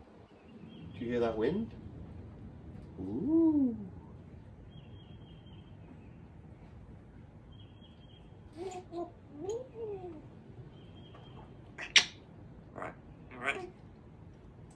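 A parrot whistles and chirps nearby in short bursts.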